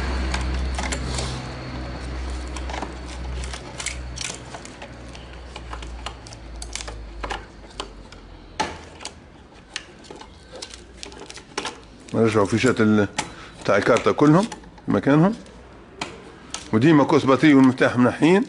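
Plastic connectors click and rattle as they are handled.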